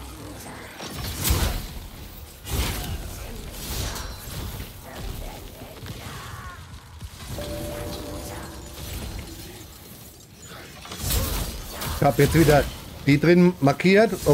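Heavy blows crash and clang in a fight.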